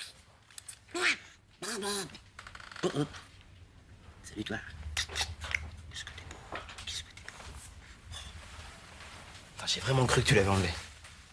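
A man speaks softly close by.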